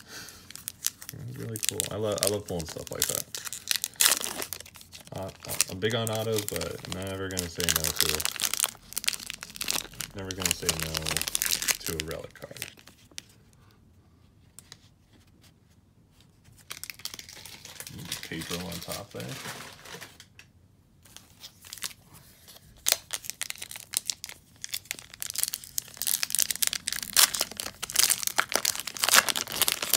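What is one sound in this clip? Foil wrappers crinkle and rustle in hands close by.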